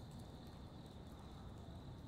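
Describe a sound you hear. Fires crackle in open braziers outdoors.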